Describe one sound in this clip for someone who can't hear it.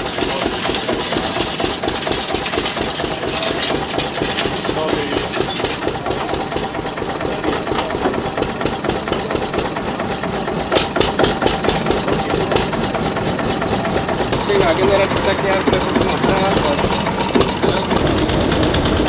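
An old single-cylinder tractor engine idles with a steady, rapid chugging.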